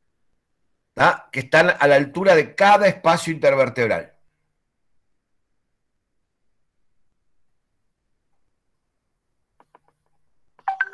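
A middle-aged man speaks calmly through an online call microphone.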